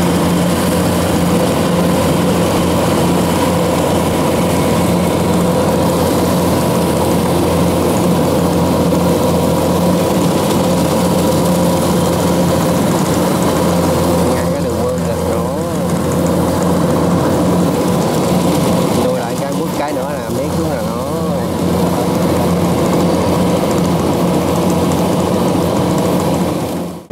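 A combine harvester engine drones loudly and steadily close by.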